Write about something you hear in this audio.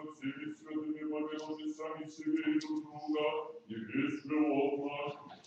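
A man chants in a slow, steady voice in a large echoing hall.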